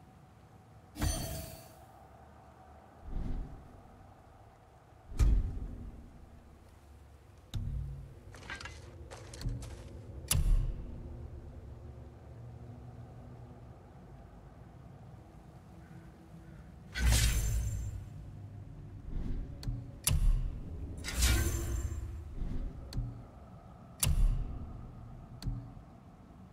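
Short game menu sounds click and whoosh as selections change.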